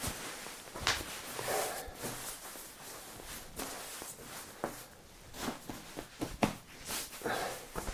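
Nylon fabric rustles and crinkles under hands.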